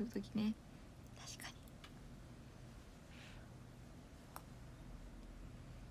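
A young woman bites and chews food close to a microphone.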